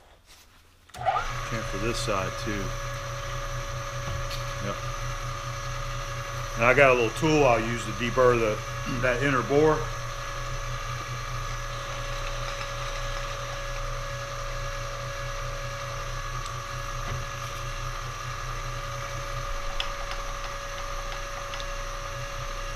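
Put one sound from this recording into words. A milling machine spindle starts up and runs with a steady whirring hum.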